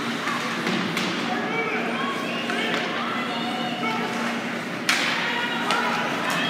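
A crowd of spectators chatters in a large echoing arena.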